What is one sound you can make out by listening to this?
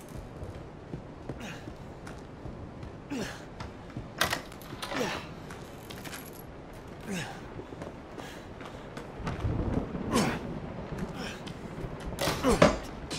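Footsteps thud and creak slowly across old wooden floorboards.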